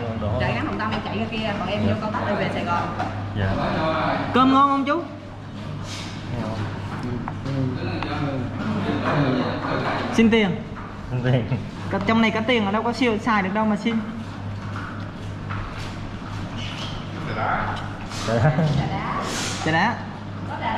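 An elderly man talks.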